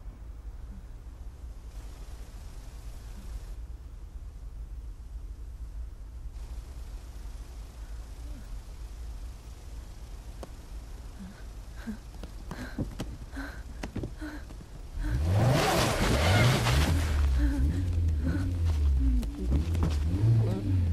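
A car engine rumbles low and steady, then roars louder.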